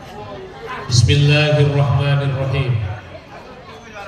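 A young man answers into a microphone, heard through a loudspeaker.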